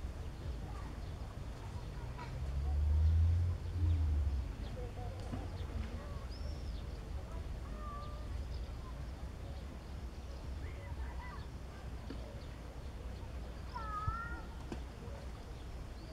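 Wind rumbles softly outdoors over open water.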